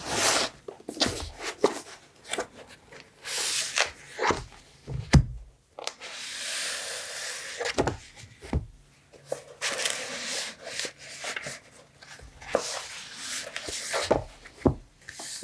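Paper sheets slide and tap against one another as they are shuffled.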